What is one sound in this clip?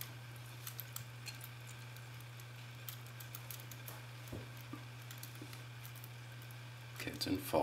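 Small metal picks click and scrape inside a padlock.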